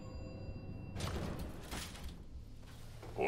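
A metal folding gate rattles open.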